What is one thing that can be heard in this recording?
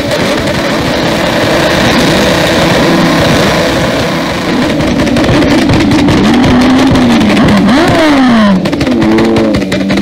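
A motorcycle engine roars loudly up close, revving up and down.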